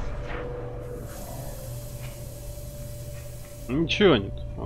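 Steam hisses out in a sudden burst.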